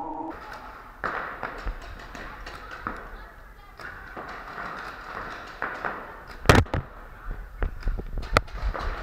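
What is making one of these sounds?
Paintball markers fire in sharp pops in a large echoing hall.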